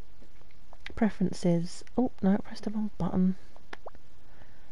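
Soft menu clicks sound as tabs change.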